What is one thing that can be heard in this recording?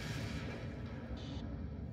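Spaceships explode in a space battle.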